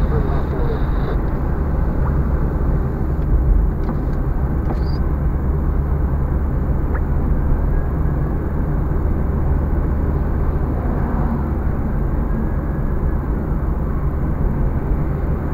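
A car's engine hums steadily as it drives along a highway.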